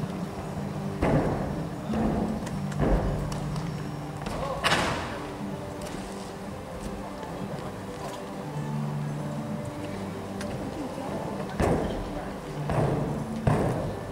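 Feet thud and land on a sprung floor in a large echoing hall.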